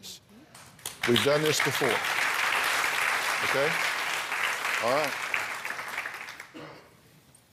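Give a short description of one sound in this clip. A studio audience applauds loudly.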